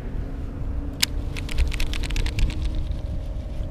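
A fishing reel clicks and whirs.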